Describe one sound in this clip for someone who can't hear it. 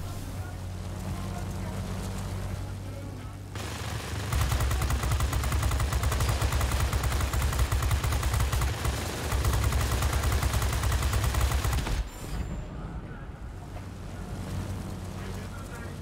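A plane engine drones steadily.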